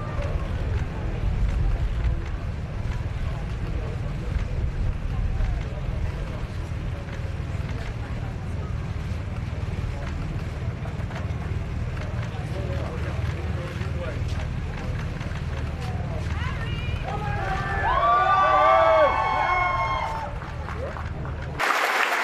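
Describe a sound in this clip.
A crowd murmurs and chatters.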